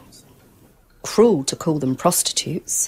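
A middle-aged woman speaks firmly nearby.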